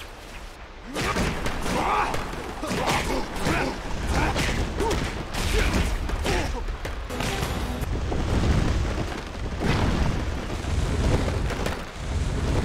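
Heavy blows land in quick succession with punching thuds.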